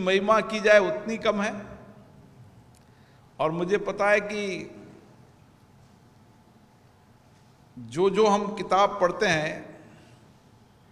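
A middle-aged man speaks slowly and deliberately into a microphone, with pauses between phrases.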